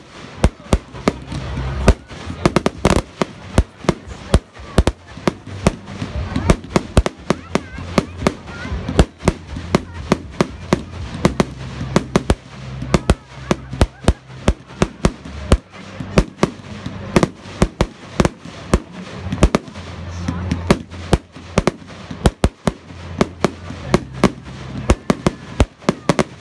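Fireworks burst with rapid, loud bangs and crackles.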